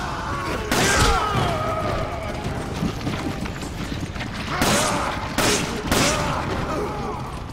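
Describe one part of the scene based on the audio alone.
Gunshots fire in short bursts, each followed by a ringing echo.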